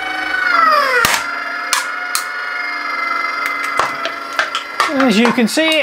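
An aluminium can crumples and crackles as it is crushed.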